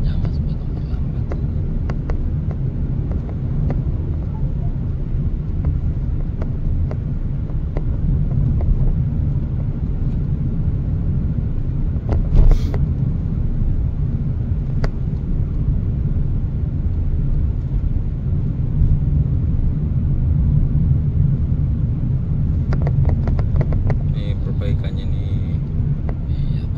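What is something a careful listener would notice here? A car engine hums steadily from inside the cabin as it drives along.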